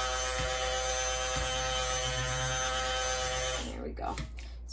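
An immersion blender whirs steadily, then stops.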